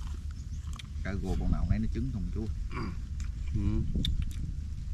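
A man speaks calmly nearby outdoors.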